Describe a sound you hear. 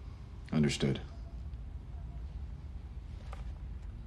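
A man speaks quietly and briefly, close by.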